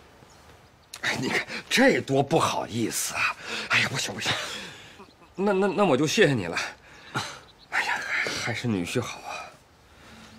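An elderly man speaks politely and close by.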